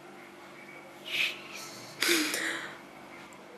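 A young woman sobs and sniffs.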